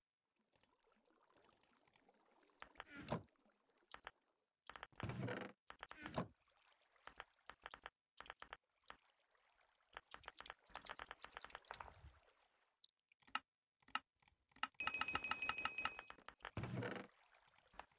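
Wooden chests creak open and thud shut.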